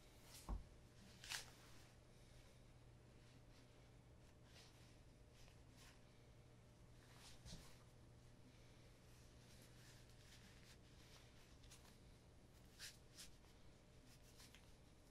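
A cloth rustles and swishes in short bursts.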